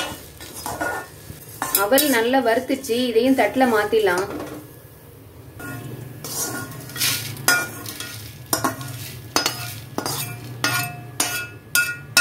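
A metal spatula scrapes against a metal pan.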